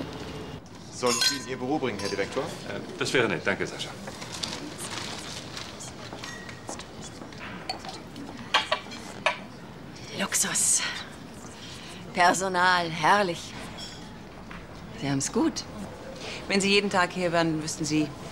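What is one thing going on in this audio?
A man speaks calmly.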